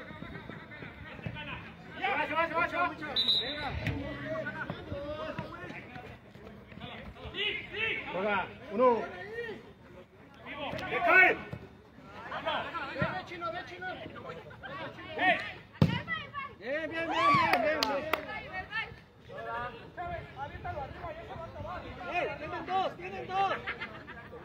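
Several men talk and shout close by, outdoors.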